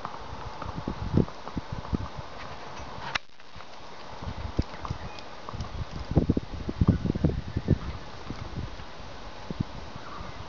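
A horse's hooves clop on a paved road.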